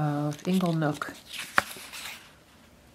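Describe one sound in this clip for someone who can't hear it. Stiff paper cards rustle and slide in a hand.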